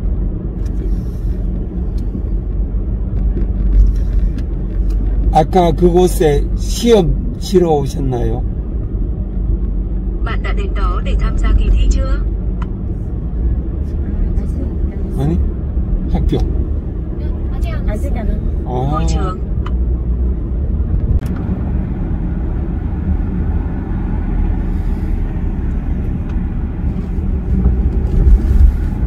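A car engine hums low and steady throughout.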